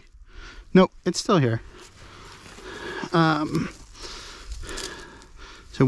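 Hands rustle through grass.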